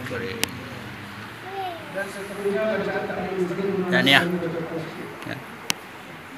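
A group of men and women chat close by.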